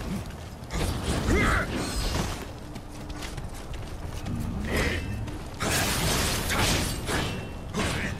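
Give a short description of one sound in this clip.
Sword slashes whoosh and strike.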